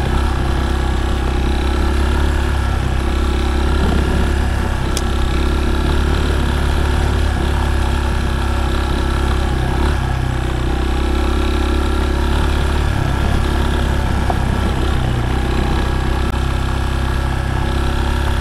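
A motorcycle engine hums steadily and shifts in pitch as it rides.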